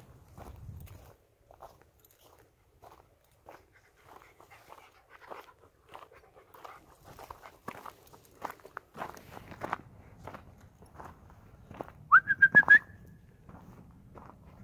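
Footsteps crunch slowly on rough ground outdoors.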